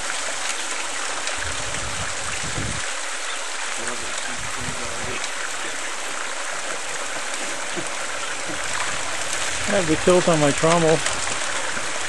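Sand and gravel pour steadily down a metal chute with a hissing rush.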